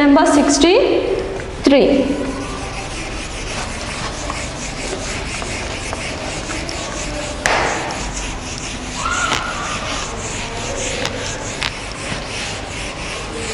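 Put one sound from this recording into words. A marker squeaks and scrapes on a whiteboard.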